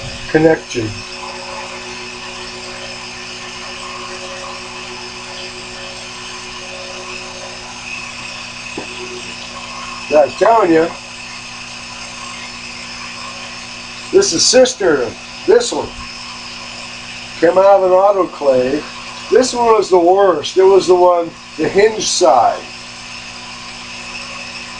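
A small lathe motor hums steadily.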